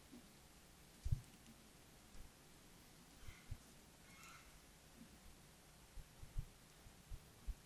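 A handheld microphone thuds and bumps as it is held.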